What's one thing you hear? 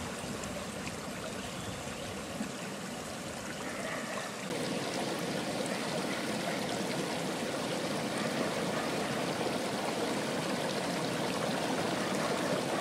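Meltwater gurgles and splashes as it flows in a small stream outdoors.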